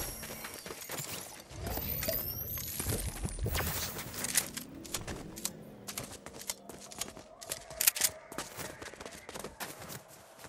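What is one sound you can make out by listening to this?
Footsteps patter quickly on dry ground.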